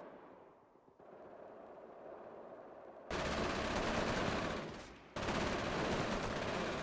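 Gunfire crackles in a battle.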